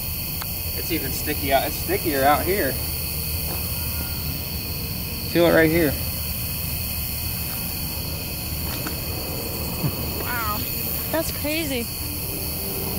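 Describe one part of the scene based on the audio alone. A man speaks quietly nearby, in short bursts.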